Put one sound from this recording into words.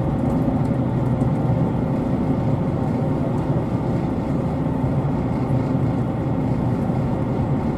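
A vehicle's engine hums and rumbles steadily from inside as it travels.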